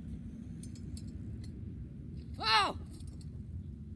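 A bicycle lands with a thud on the ground.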